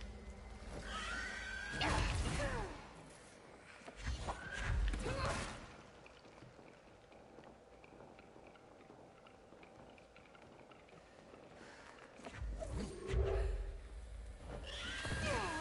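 Sizzling, whooshing game effects swell and fade.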